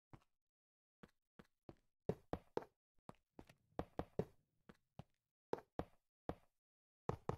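Footsteps tap on stone at an uneven pace.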